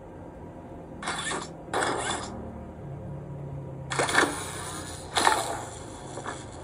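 A game on a tablet plays short bursts of noisy sound effects.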